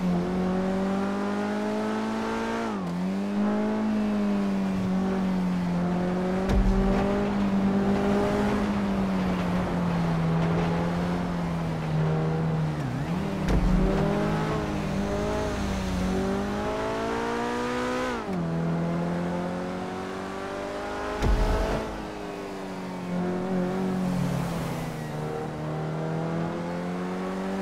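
A car engine roars steadily, its pitch rising and falling as gears shift.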